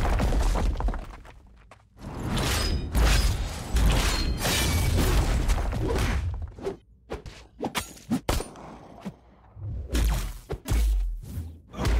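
Heavy punches and blasts thud and crash in a fight.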